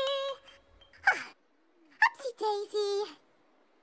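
A woman sings.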